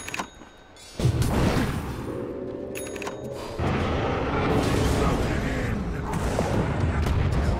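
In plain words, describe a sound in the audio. A young man speaks into a microphone with animation.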